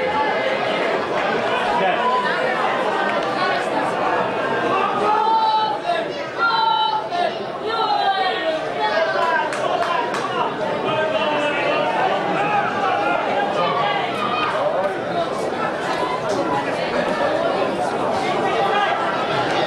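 A crowd of spectators chatters and shouts in a large open stadium.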